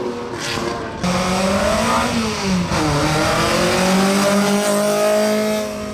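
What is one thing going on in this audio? A second rally car engine roars loudly as it accelerates through a bend.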